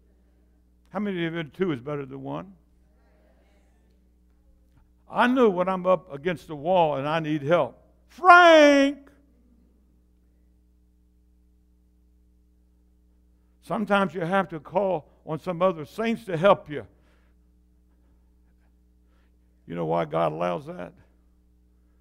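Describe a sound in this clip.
An elderly man preaches with animation through a microphone, in bursts with pauses.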